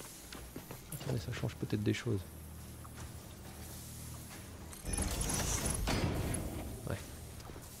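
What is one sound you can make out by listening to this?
Electronic whooshing effects sound as building blocks snap into place.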